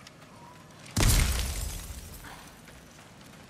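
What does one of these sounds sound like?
A magical burst crackles and whooshes loudly.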